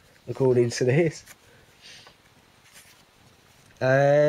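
Paper pages rustle as they are flipped.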